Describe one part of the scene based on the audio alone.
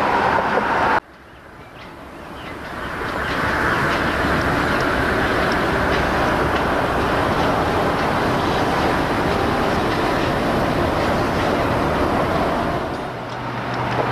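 A diesel locomotive engine rumbles steadily nearby.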